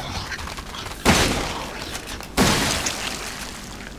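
A shotgun fires loud blasts that echo.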